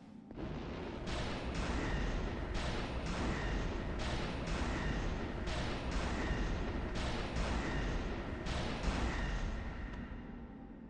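Swords clash and strike again and again.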